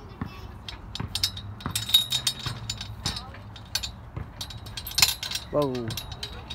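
Metal swing chains rattle and clink.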